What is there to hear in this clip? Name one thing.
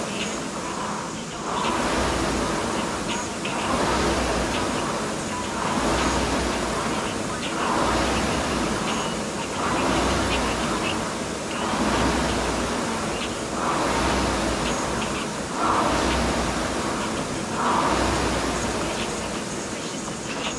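A rowing machine whooshes in a steady rhythm of strokes.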